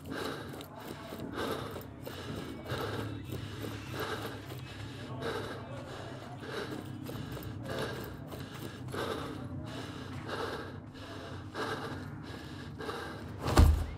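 Footsteps crunch steadily over rocky ground.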